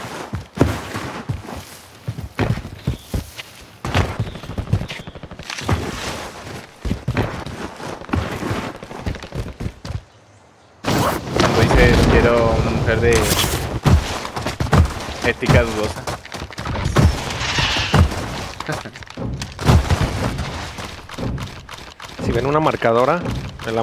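Quick footsteps thud and crunch on dirt and gravel.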